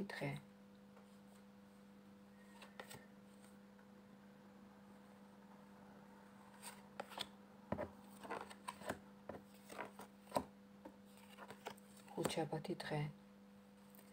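Playing cards are shuffled and tapped on a table.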